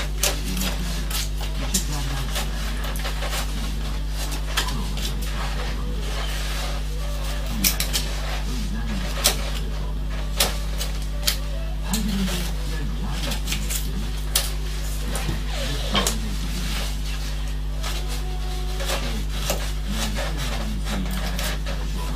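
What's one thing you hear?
A carving knife scrapes and clicks against wood.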